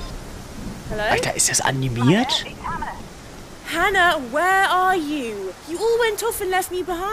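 A young woman speaks anxiously on a phone.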